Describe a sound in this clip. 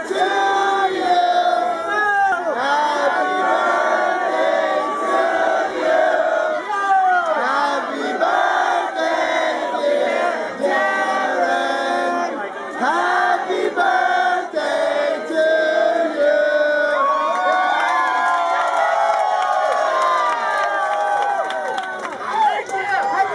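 Loud electronic dance music plays over club speakers.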